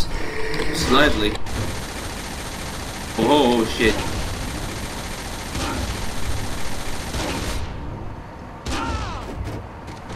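Explosions boom and crackle ahead of a tank.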